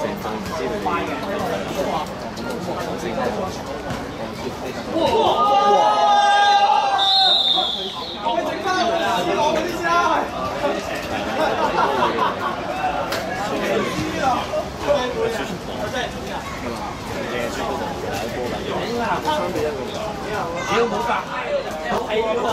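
Several young men talk and shout nearby, outdoors.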